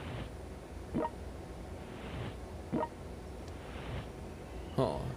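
A deck gun fires in short bursts.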